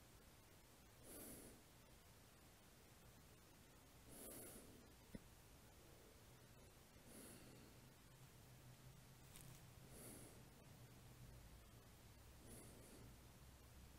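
A man breathes slowly and deeply, close by.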